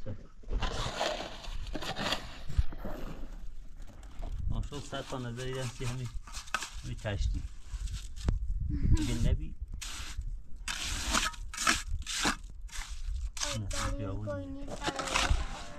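A trowel scrapes wet cement mortar from a metal pan.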